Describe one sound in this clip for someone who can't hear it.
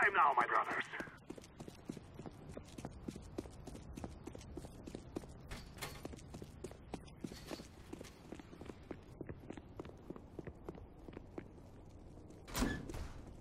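Footsteps run steadily on a hard floor.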